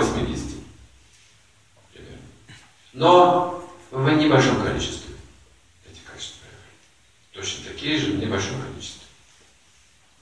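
An elderly man reads aloud slowly and calmly, with pauses.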